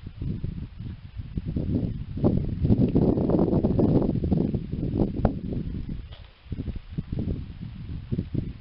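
Wind rumbles outdoors against the microphone.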